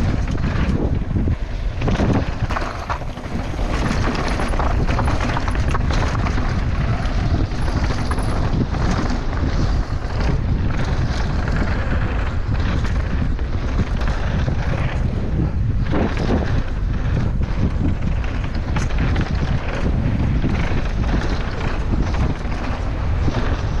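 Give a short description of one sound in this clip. Wind rushes loudly past a rider at speed.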